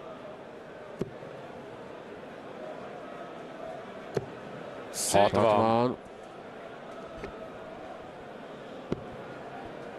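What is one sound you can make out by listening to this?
Darts thud into a dartboard one after another.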